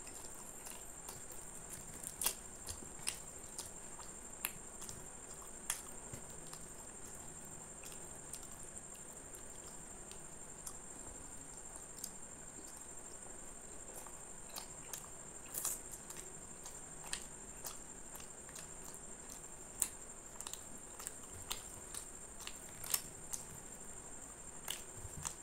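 A man tears soft flatbread and squelches it through thick sauce with his fingers, close up.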